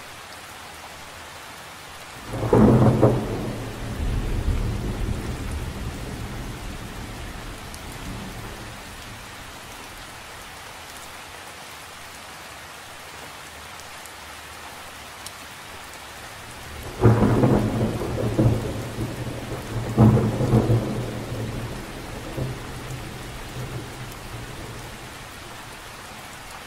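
Light rain patters steadily on the surface of a lake outdoors.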